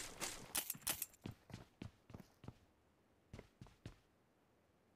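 Quick footsteps thud across a hard floor.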